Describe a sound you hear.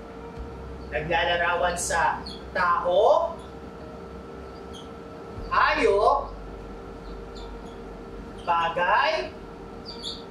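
A man speaks calmly in a slow, teaching voice.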